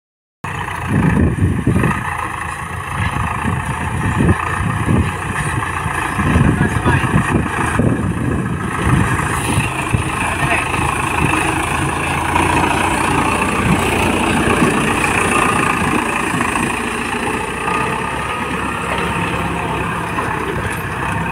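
A tractor's tyres and plough crunch through dry soil and grass.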